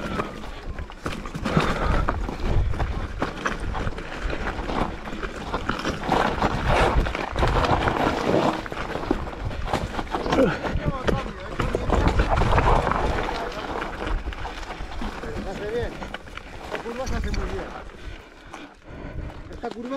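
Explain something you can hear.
A mountain bike's frame and chain clatter on rough ground.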